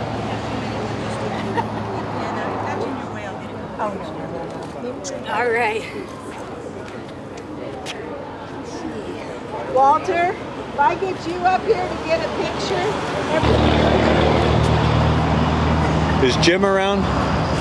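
People murmur and chat in the background outdoors.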